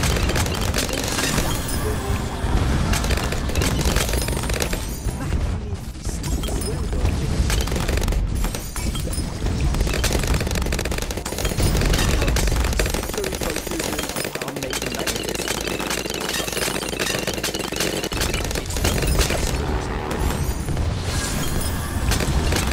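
Cartoonish pops and small blasts crackle rapidly and without pause.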